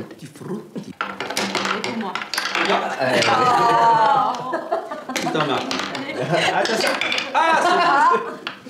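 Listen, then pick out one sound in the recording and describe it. Several men and women talk over one another with animation.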